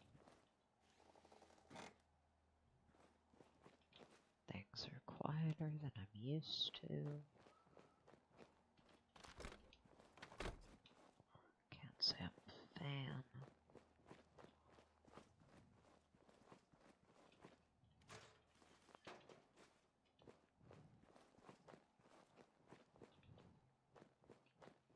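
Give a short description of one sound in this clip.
Footsteps tread softly over rubble and pavement.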